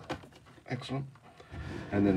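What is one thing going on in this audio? A cardboard box slides across a wooden surface.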